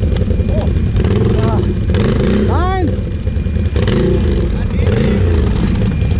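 A quad bike engine revs loudly and roughly close by.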